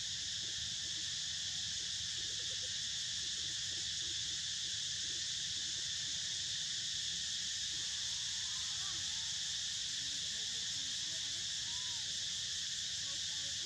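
Dry leaves rustle softly under moving monkeys.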